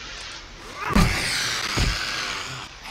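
A spiked club thuds heavily into a body.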